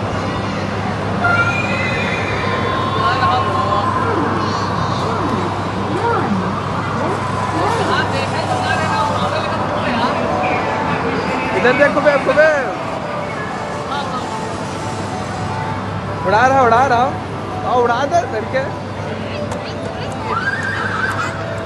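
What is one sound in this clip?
A children's ride plays jingles and warbling electronic sound effects.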